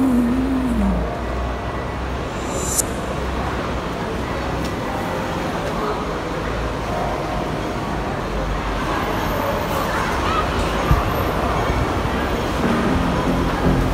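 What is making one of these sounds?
A busy crowd murmurs in a large echoing space.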